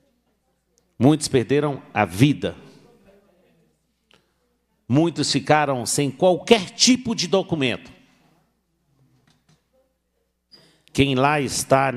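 A middle-aged man speaks firmly into a microphone, in short bursts with pauses.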